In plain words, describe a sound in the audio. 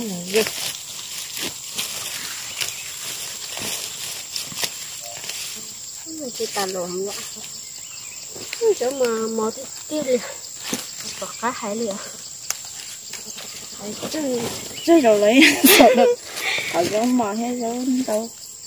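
Leafy plants rustle and stems snap as they are picked.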